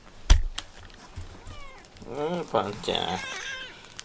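A cat's paws pad softly across a wooden floor.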